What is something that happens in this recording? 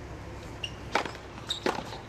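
A tennis racket strikes a ball with a sharp pop.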